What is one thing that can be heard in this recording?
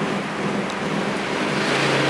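A bicycle rolls past nearby.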